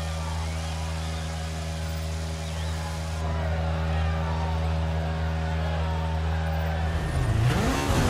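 A rally car engine idles with a steady low rumble.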